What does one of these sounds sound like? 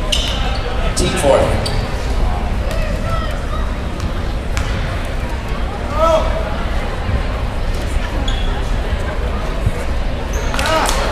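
A crowd murmurs and chatters in a large echoing gym.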